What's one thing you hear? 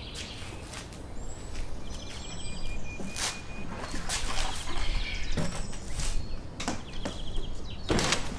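A car's tailgate thumps as it opens and shuts.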